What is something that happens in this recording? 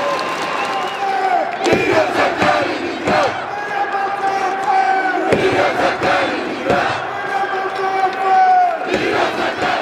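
A large crowd of men sings and chants loudly.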